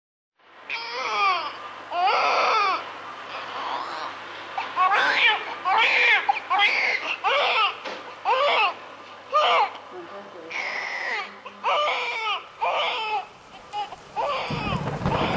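A newborn baby cries loudly in repeated wailing bursts close by.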